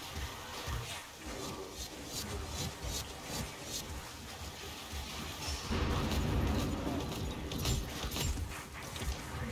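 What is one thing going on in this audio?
Heavy blades slash and strike with repeated thuds.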